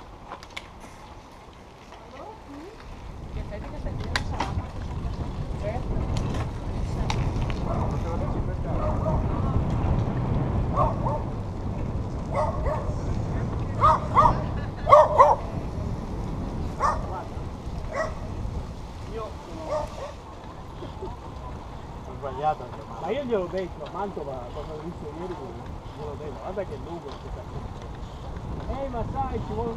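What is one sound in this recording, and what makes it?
Bicycle tyres roll over a paved road.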